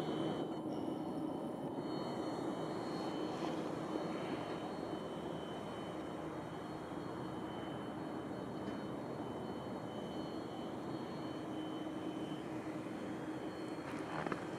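A jet airliner's engines whine and roar steadily as it taxis past.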